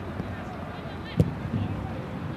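A goalkeeper kicks a football with a sharp thud.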